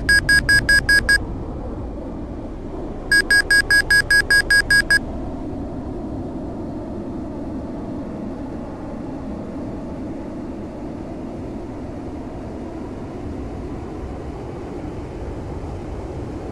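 A jet engine drones steadily from inside a cockpit.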